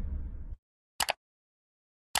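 A mouse button clicks once.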